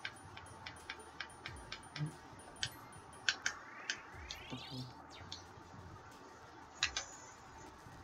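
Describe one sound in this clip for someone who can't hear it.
Short electronic menu blips tick in quick succession.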